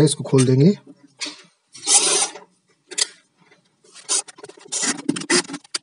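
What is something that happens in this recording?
A cordless screwdriver whirs in short bursts as it turns a screw.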